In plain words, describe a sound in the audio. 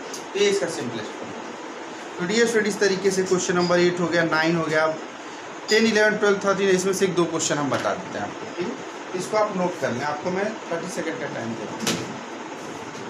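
A man speaks calmly and explains close by.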